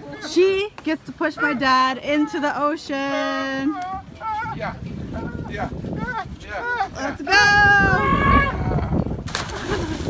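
A woman talks and laughs with animation nearby.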